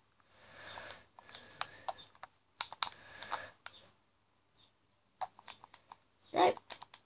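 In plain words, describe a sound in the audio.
Video game sound effects play from a television.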